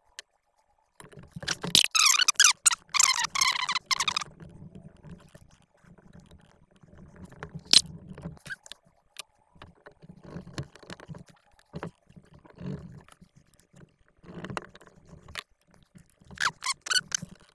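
Small plastic and metal parts click and rattle as hands fit them together.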